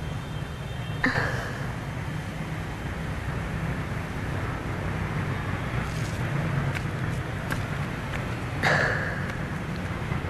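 A young woman gasps and breathes heavily close by.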